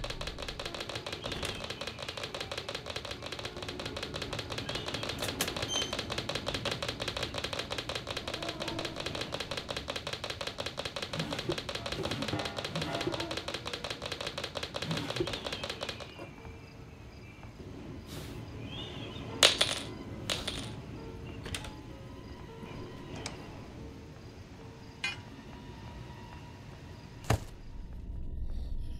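Footsteps thud on creaky wooden floorboards.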